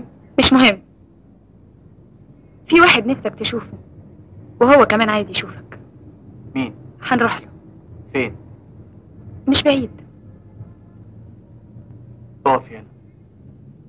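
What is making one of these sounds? A woman shouts inside a car.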